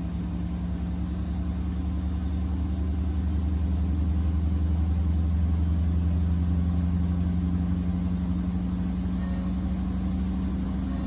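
A washing machine hums steadily as its drum spins.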